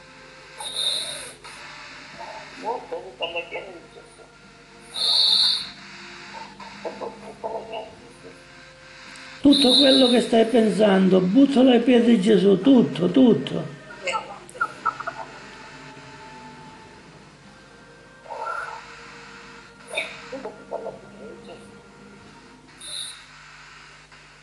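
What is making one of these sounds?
An elderly man talks through a small phone speaker.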